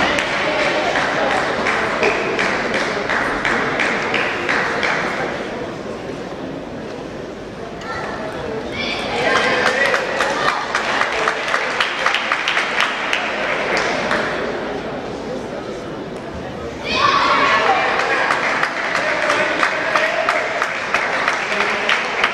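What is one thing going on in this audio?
Table tennis balls tick back and forth on tables and paddles in a large echoing hall.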